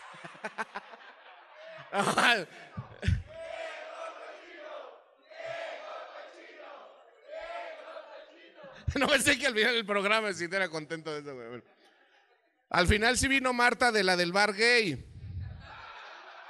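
A man speaks loudly and with animation through a microphone in a large hall.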